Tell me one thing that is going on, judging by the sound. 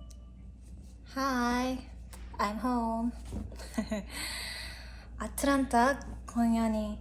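A young woman talks cheerfully and calmly.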